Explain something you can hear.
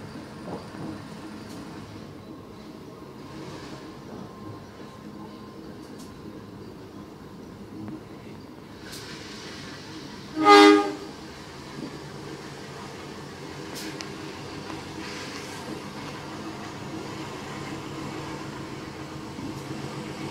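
A diesel-electric locomotive engine idles.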